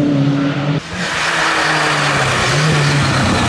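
Tyres hiss on a wet road as a rally car approaches.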